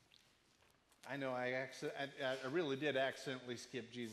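A man speaks clearly into a microphone, heard through a loudspeaker in a large room.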